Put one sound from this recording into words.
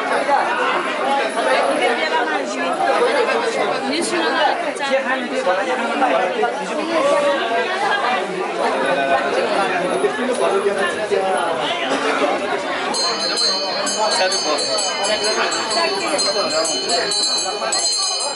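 A crowd of men and women chatter and talk over each other in a lively, echoing room.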